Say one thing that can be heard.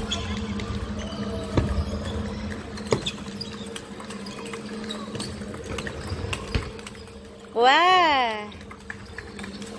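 Table tennis balls click sharply against paddles and tables in a large echoing hall.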